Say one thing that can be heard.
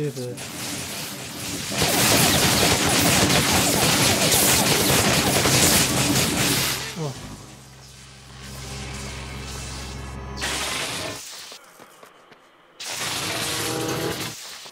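Fire blasts roar and crackle.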